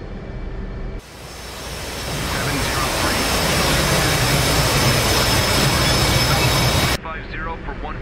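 Jet engines roar loudly and steadily.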